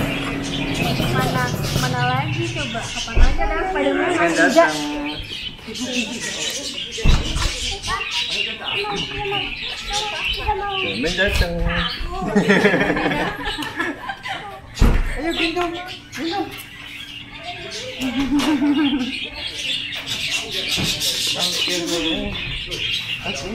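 A woman talks and laughs with animation close by.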